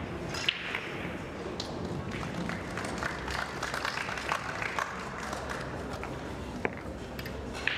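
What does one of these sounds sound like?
Pool balls click as a cue strikes the cue ball.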